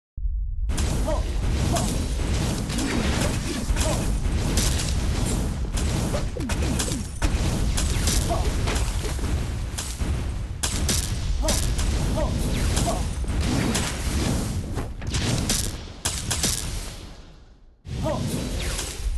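Game explosions and magic blasts burst rapidly again and again.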